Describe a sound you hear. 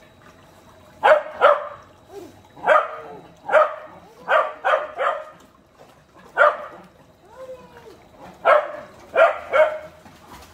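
A dog barks sharply and repeatedly nearby.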